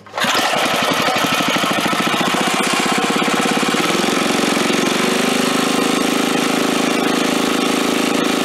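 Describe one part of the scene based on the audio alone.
A small petrol engine starts up, chugs and then runs loudly at a faster steady idle.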